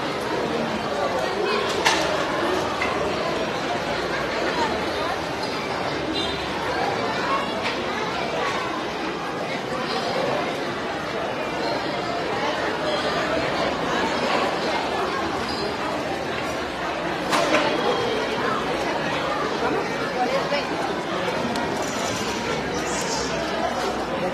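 A large crowd of men and women chatters loudly in an echoing hall.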